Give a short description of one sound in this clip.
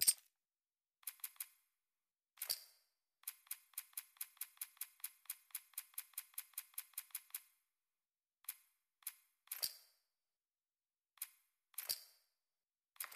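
Menu clicks tick quickly in a quick run.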